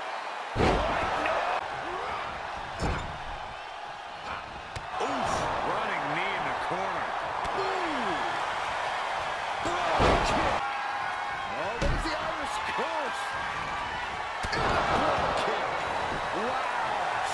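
Heavy bodies thud onto a wrestling ring mat.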